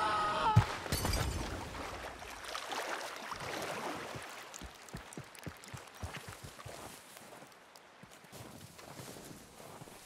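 A man's footsteps crunch on snow.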